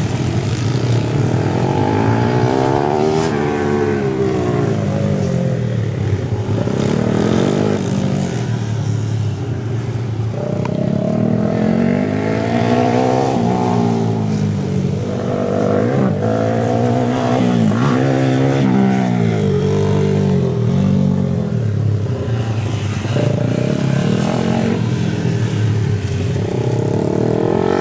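Dirt bike engines rev and whine, rising and falling in pitch as the bikes ride past.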